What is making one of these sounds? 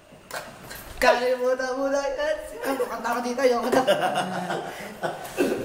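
A teenage boy laughs loudly close by.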